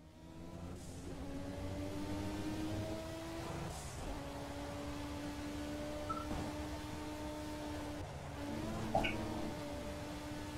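A racing car engine roars steadily, its pitch shifting with each gear change.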